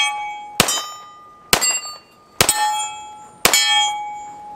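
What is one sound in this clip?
A pistol fires sharp shots outdoors, one every second or so.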